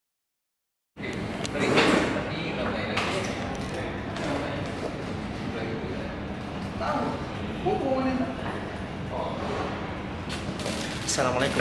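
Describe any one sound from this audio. Several men talk quietly in a small room.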